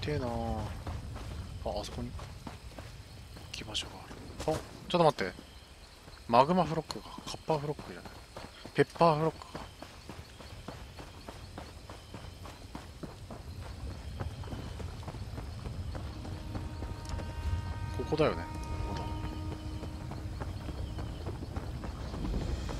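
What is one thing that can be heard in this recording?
Footsteps run softly through grass and over ground.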